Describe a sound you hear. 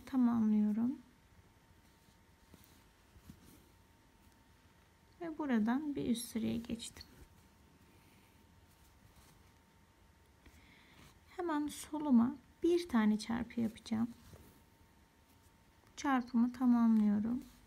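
Thread is pulled softly through cloth as a needle stitches.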